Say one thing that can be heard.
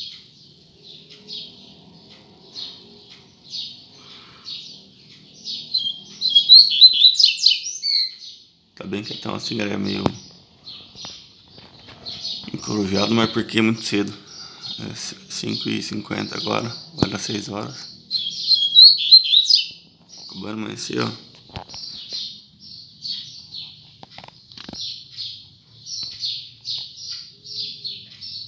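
A caged bird chirps and trills repeatedly, close by.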